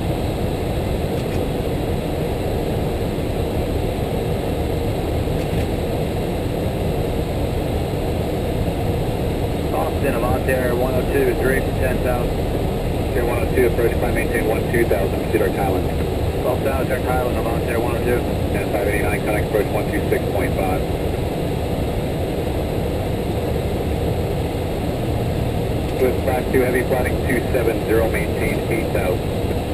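A steady, loud roar of jet engines and rushing air fills a cockpit in flight.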